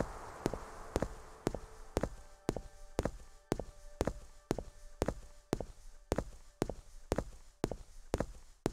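Footsteps crunch steadily on dirt at a walking pace.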